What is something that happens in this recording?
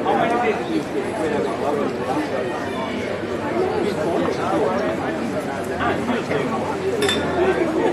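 A crowd of adults chatters at close range outdoors.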